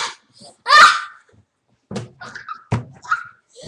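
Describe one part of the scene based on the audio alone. A young girl shrieks and laughs excitedly close by.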